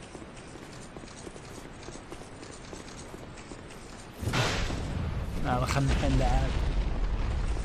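Heavy armored footsteps clank on stone.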